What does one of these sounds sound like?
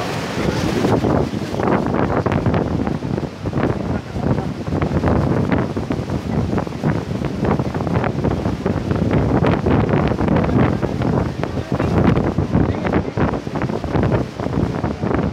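Wind gusts buffet the microphone.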